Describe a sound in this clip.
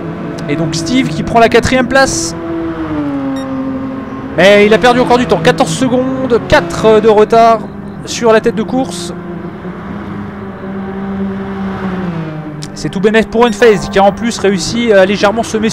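Other racing cars roar past close by.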